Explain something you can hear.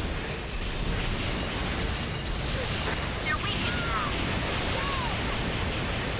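Energy guns fire in rapid bursts.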